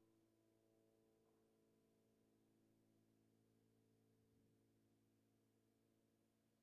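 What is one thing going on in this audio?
A grand piano plays softly with sustained notes in a large, echoing hall.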